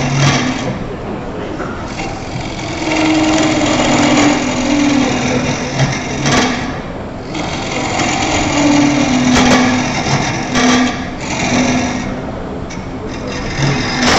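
A wood lathe hums steadily as it spins.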